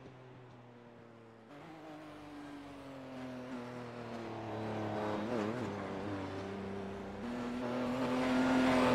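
A race car engine roars, growing louder as the car approaches.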